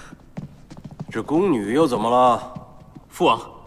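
An older man asks a question calmly.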